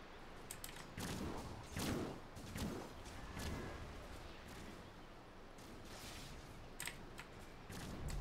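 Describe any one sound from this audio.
Magic spells whoosh and crackle in a game battle.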